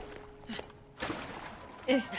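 Water splashes loudly.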